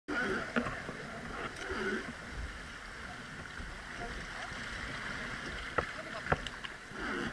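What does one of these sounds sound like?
A wooden oar knocks against a boat.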